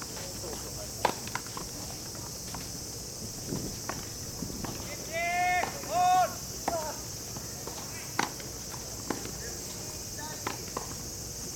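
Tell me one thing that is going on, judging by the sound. Tennis rackets strike a ball with sharp pops, heard outdoors at a distance.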